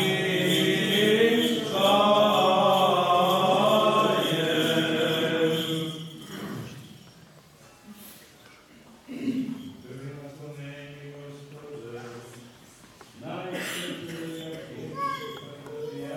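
A man chants slowly in an echoing hall.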